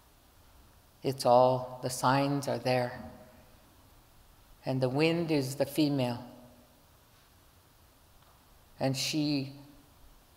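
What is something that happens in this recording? A middle-aged woman speaks calmly into a microphone, with pauses between phrases.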